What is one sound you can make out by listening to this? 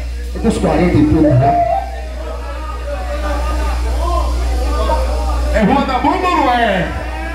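A man sings loudly into a microphone over a loudspeaker.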